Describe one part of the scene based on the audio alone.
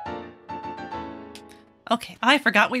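A short bright game jingle chimes.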